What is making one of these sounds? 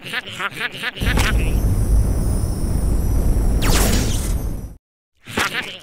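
A cartoon doll whooshes loudly as it is flung through the air.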